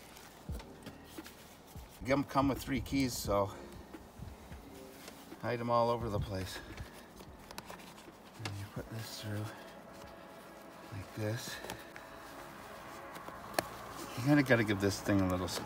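A fabric cover rustles as it is handled.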